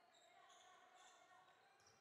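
A young woman shouts loudly in an echoing hall.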